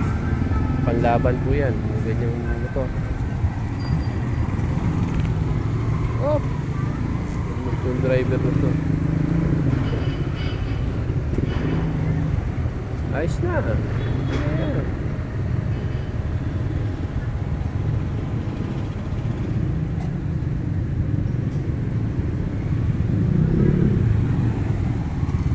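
Motor tricycle and motorbike engines rumble steadily nearby outdoors.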